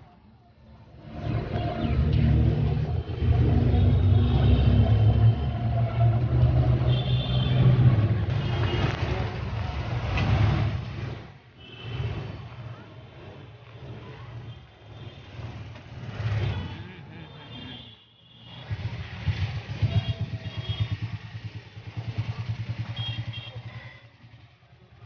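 An auto-rickshaw engine rattles and hums up close.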